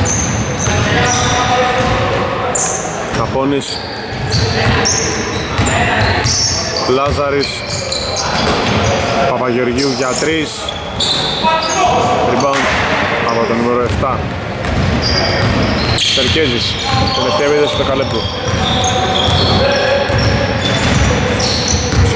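Men shout and call out to each other across a large echoing hall.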